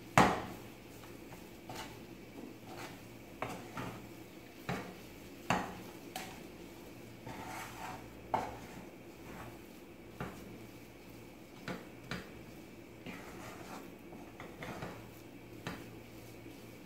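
A wooden spatula scrapes and knocks against a metal pan.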